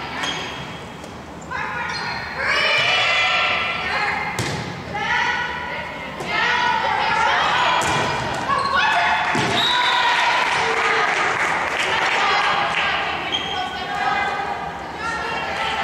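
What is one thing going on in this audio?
Young women players call out to each other.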